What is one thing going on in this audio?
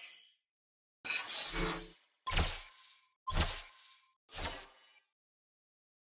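A countdown chimes once every second.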